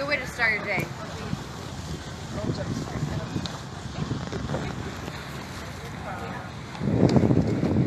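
A young woman speaks aloud outdoors.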